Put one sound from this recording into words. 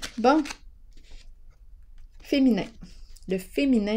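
A playing card is laid down on a table with a soft slap.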